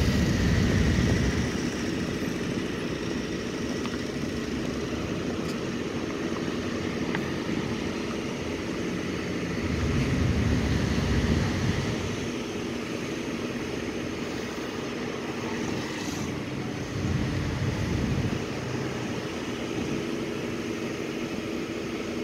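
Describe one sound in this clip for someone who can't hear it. A line of cars rolls slowly past close by, their engines rumbling low.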